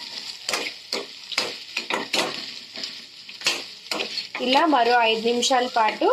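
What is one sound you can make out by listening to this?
A metal spatula scrapes and clatters against a pan.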